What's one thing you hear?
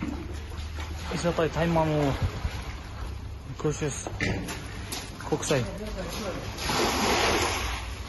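Water splashes as it is scooped and poured out of a bucket.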